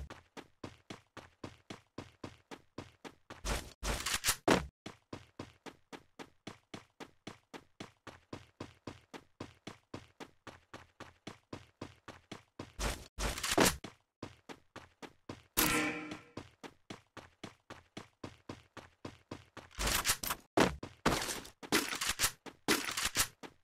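Footsteps of a game character patter quickly and steadily while running.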